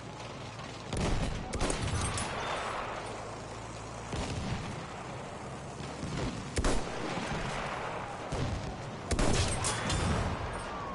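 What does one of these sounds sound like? A rifle fires single loud shots that boom and echo.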